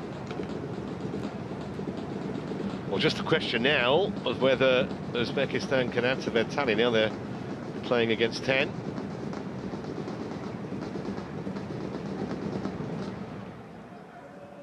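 A stadium crowd murmurs in a large open space.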